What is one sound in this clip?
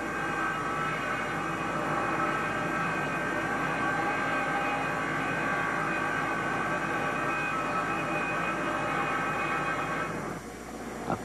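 A machine saw hums steadily while cutting.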